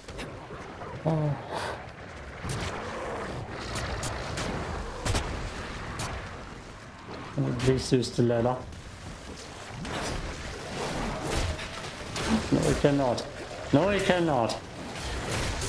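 A young man talks calmly into a microphone, close by.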